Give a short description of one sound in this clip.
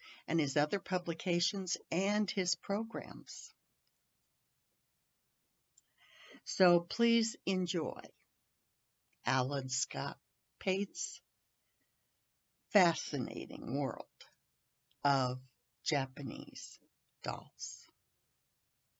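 An older woman talks calmly through an online call.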